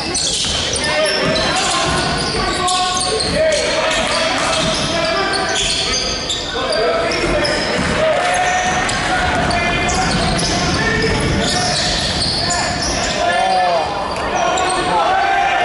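Young players shout to each other.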